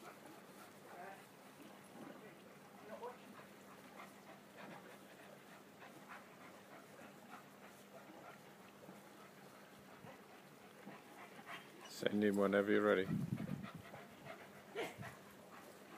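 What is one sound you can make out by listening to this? A young woman speaks to a dog in a high, cheerful voice nearby.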